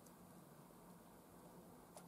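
Fingers press laptop keys.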